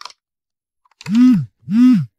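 A mobile phone rings with a repeating rising and falling tone.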